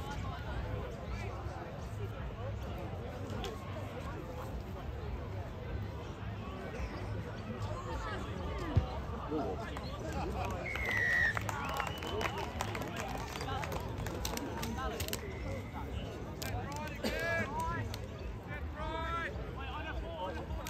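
A crowd of spectators chatters outdoors in the distance.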